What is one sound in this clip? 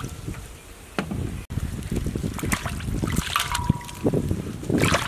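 Pieces of raw meat drop into water with wet splashes.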